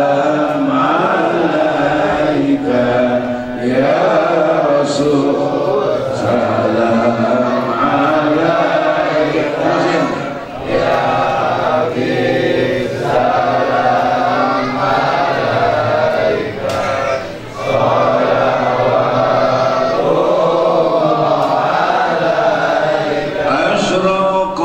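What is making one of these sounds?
An elderly man speaks with animation through a microphone and loudspeakers, his voice echoing in the room.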